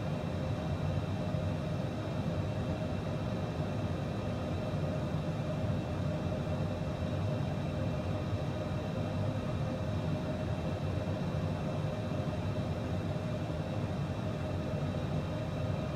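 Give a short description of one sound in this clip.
Jet engines drone steadily with a low rumble and a constant whine.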